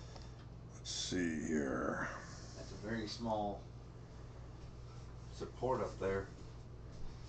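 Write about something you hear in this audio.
A middle-aged man speaks calmly and close to a microphone, in short bursts.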